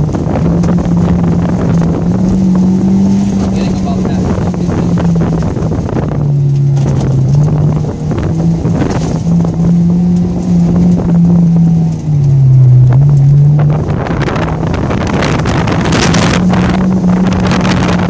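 A car engine revs hard, rising and falling as the car speeds up and slows down.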